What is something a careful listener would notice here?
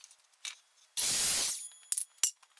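A power miter saw whirs briefly.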